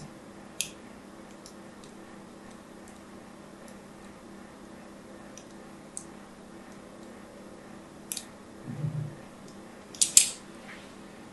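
A fingernail taps and clicks on a hard surface.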